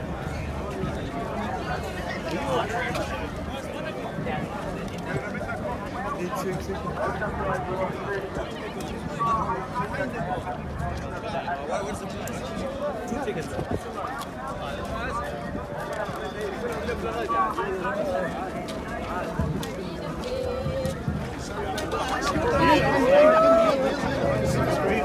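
A large crowd chatters and shouts all around, outdoors.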